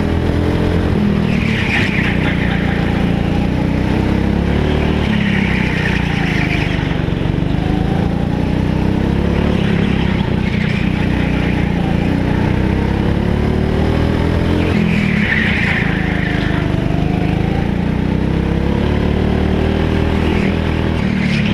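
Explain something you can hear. A go-kart engine drones loudly and rises and falls in pitch as it speeds up and slows down.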